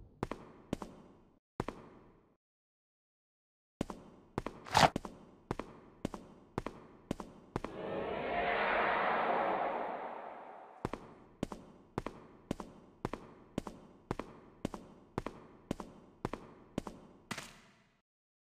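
Footsteps tap steadily on a stone floor, echoing.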